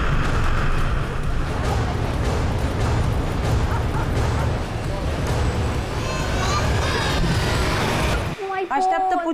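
A crowd murmurs and shouts outdoors.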